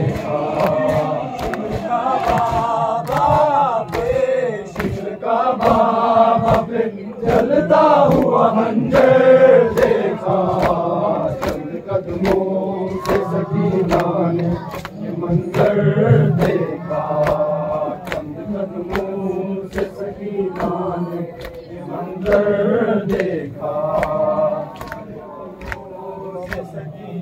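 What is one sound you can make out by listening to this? A crowd of men chants together loudly outdoors.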